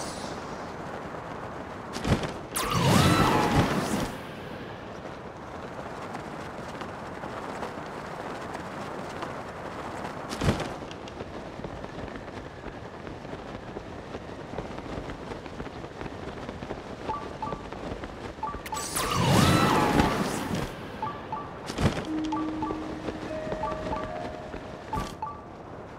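Wind rushes steadily past a falling figure.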